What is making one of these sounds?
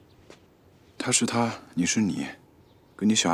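A young man speaks firmly, close by.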